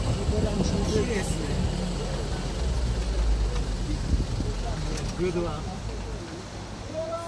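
Wind buffets outdoors with a low rumble.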